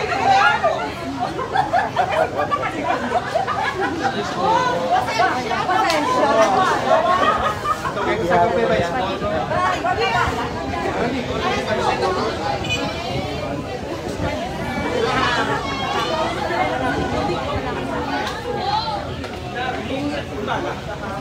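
A crowd of men and women talk over one another close by, outdoors.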